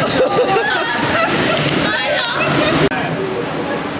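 Riders shout and laugh on a water ride.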